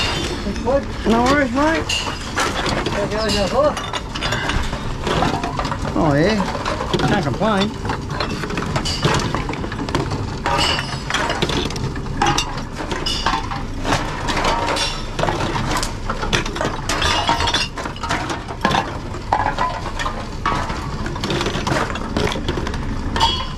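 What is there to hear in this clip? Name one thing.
A recycling machine whirs as it takes in containers.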